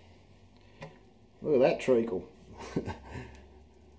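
Thick liquid glugs out of a can into a container.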